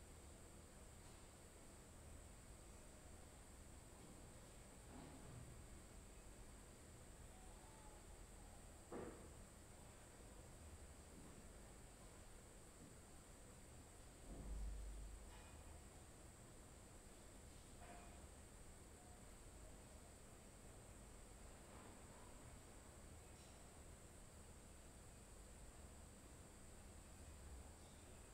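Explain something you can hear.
A man breathes slowly and softly close to a microphone.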